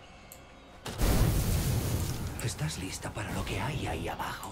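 Flames whoosh and roar as they catch.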